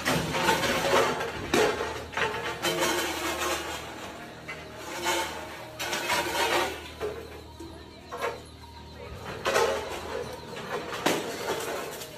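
Metal racks clatter and scrape as they are pulled over.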